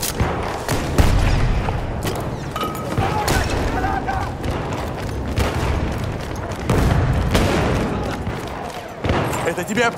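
Gunshots and blasts boom and crack nearby in a rumbling battle.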